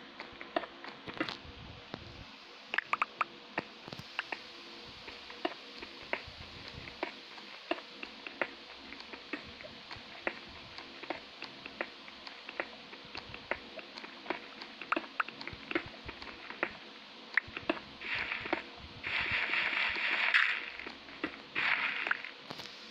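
A pickaxe taps and chips at stone blocks in quick, repeated knocks.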